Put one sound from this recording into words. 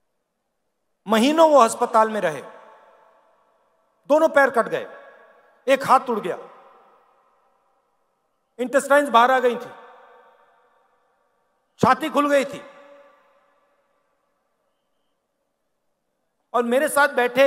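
A man speaks forcefully in short phrases through a loudspeaker, echoing across a large open space.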